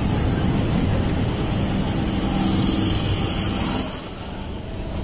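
A stationary train hums steadily.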